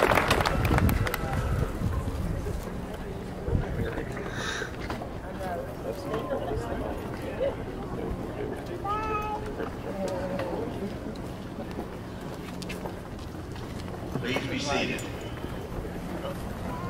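Nearby people of mixed ages chat quietly.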